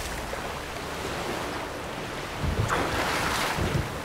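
A man swims through choppy water.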